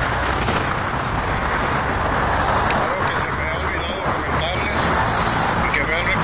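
Heavy traffic roars past close by.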